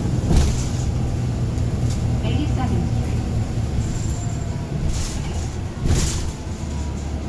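A bus engine rumbles steadily from inside the moving bus.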